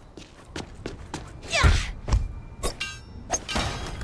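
A glass door swings open with a thud.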